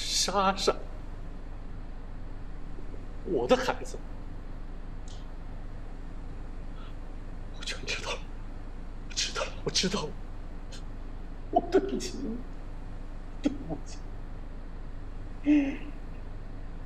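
A middle-aged man speaks emotionally into a close microphone, in short broken phrases.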